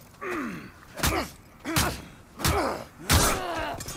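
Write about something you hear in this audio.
Blades strike and clash in sharp, quick hits.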